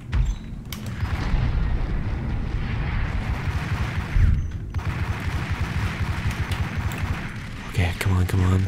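Pistols fire in rapid bursts, echoing off hard walls.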